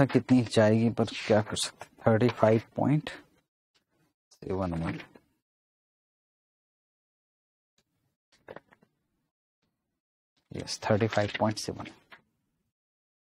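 A man speaks calmly into a clip-on microphone, in short bursts with pauses.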